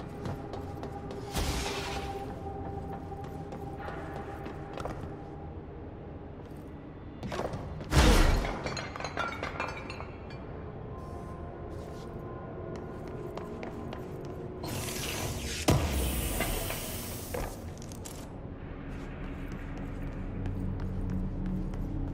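Footsteps thud on a metal walkway.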